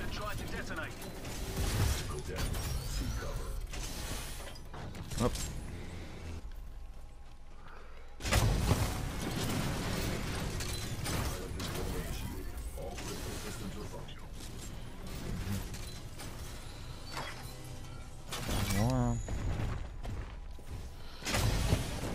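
Large mechanical robots stomp and clank.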